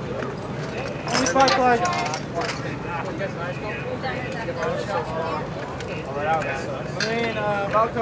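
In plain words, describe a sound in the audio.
Metal tools clank and click against an engine.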